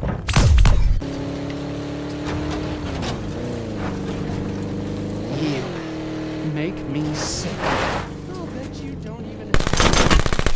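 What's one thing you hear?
A vehicle engine hums steadily and shifts in pitch.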